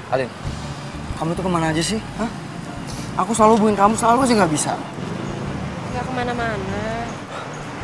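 A young woman speaks up close with animation.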